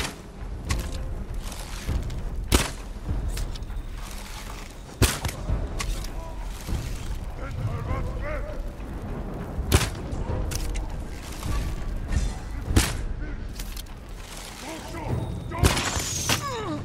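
A bow is drawn and arrows whoosh off in quick shots.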